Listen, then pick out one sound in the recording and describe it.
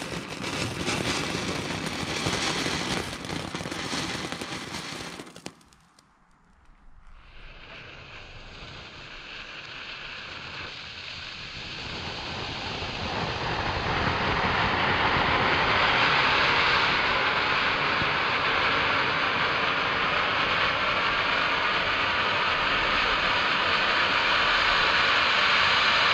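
A firework fountain hisses and crackles loudly outdoors.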